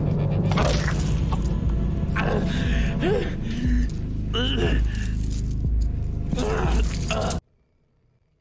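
A man grunts and chokes as he struggles, heard up close.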